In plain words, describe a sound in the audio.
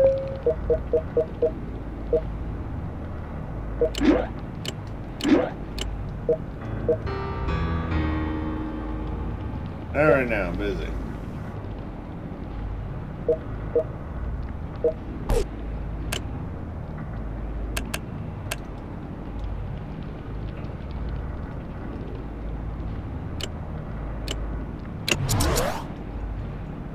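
Short electronic menu blips and clicks sound as selections change.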